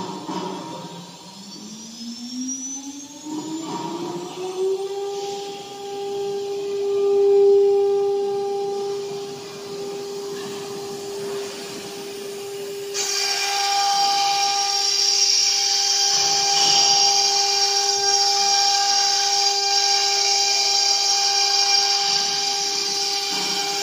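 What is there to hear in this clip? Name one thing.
A router spindle spins up with a rising whine, then hums at a steady high pitch.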